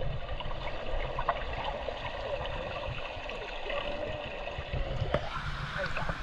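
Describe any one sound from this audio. Water bubbles and gurgles underwater, muffled.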